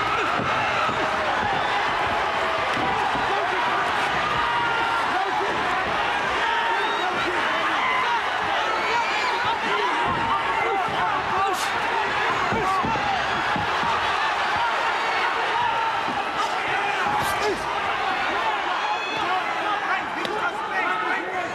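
A crowd cheers and shouts steadily in a large hall.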